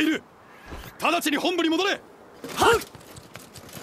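A young man shouts with determination.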